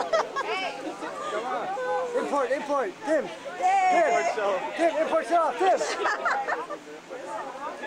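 A young woman laughs brightly.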